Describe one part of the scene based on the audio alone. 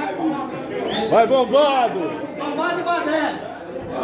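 A man laughs loudly nearby.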